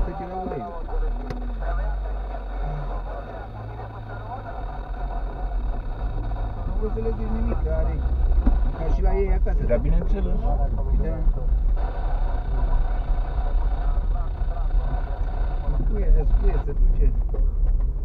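Tyres rumble and crunch over a bumpy dirt road.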